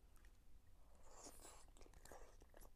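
A woman eats, chewing noisily close by.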